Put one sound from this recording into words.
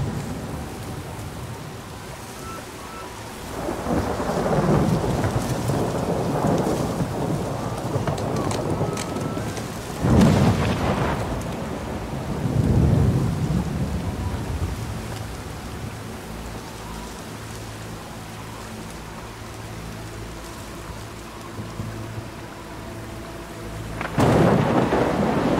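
A river rushes and splashes steadily.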